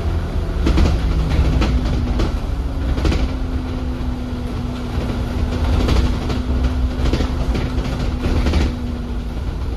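Tree branches scrape and brush against the side of a bus.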